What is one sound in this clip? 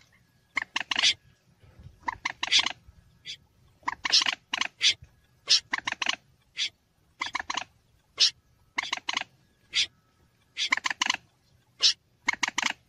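A bird gives sharp, rapid calls in short bursts, again and again.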